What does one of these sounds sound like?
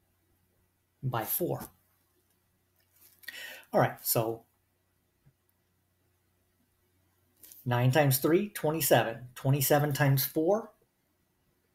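A man explains calmly into a close microphone, in short bursts with pauses.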